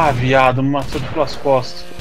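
Gunfire pops in quick bursts.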